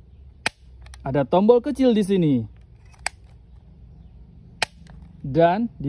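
A toy blaster plays loud electronic sound effects.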